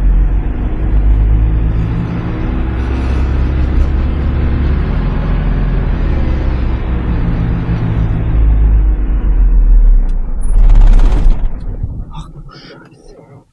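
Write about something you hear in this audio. A vehicle engine rumbles and strains while driving over sand.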